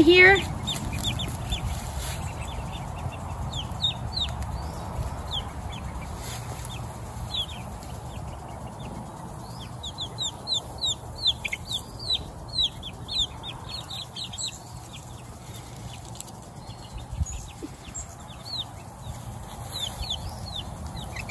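Chicks peep in high, rapid chirps close by.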